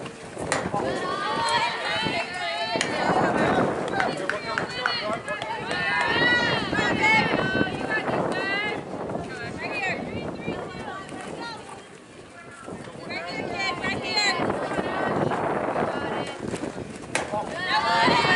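Young women shout and cheer encouragement outdoors.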